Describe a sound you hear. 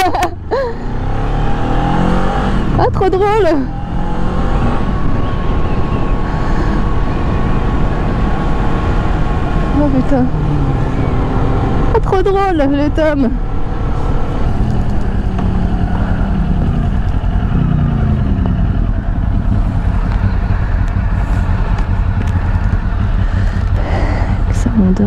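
A motorcycle engine hums and revs up and down.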